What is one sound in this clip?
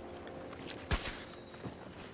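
A rifle fires a sharp single shot.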